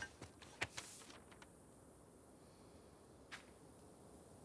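A sheet of paper rustles as it is handled.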